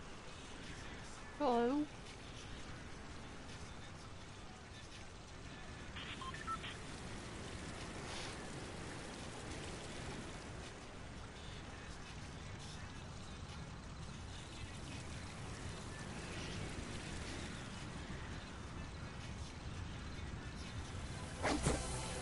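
Wind rushes steadily past a gliding game character.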